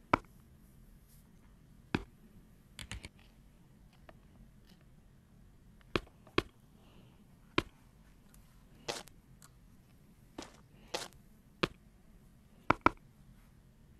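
Hands knock and tap against hard surfaces in short, scattered thuds.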